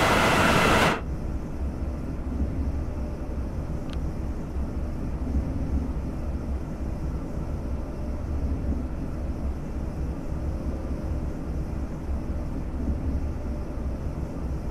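A train rumbles low and steady from inside its cab as it rolls along the rails.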